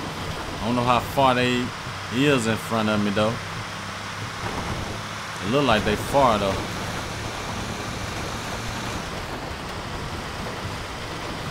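A heavy truck engine drones steadily as it drives along a road.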